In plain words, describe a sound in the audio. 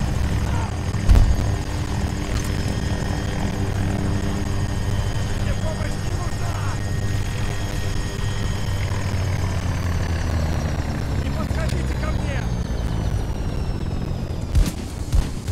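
A helicopter engine hums steadily nearby.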